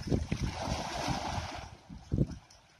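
Water splashes as a man wades through shallow water.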